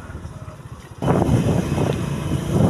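A motorcycle engine rumbles close by.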